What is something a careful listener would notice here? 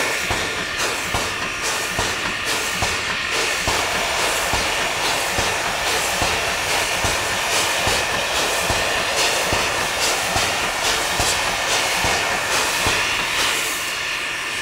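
A steam locomotive chuffs loudly with rhythmic exhaust blasts.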